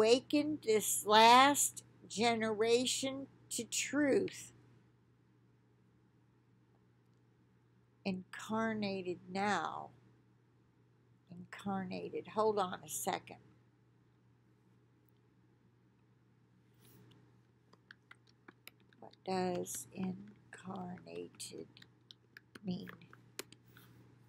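An older woman talks calmly and close by, heard through an online call, with pauses between phrases.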